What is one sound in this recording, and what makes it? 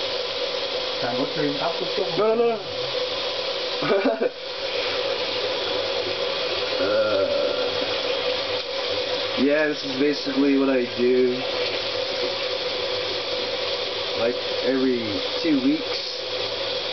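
A young man speaks casually close by.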